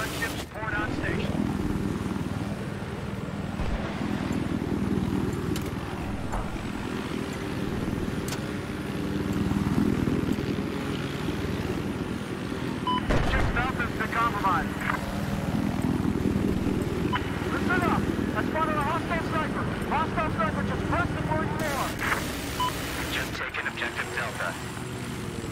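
A helicopter's rotor thrums steadily.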